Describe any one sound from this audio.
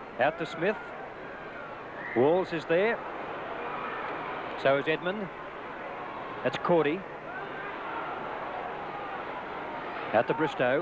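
A sparse crowd murmurs in an open stadium.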